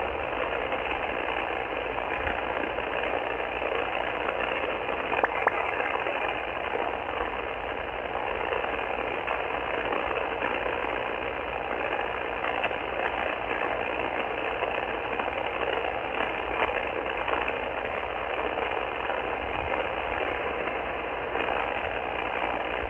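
Static hisses steadily from a radio receiver's speaker, with faint crackles.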